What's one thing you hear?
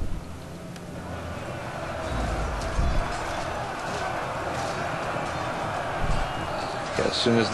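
A large crowd of soldiers roars and clamours in the open.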